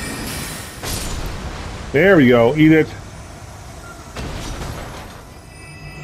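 Heavy metal weapons clash and strike.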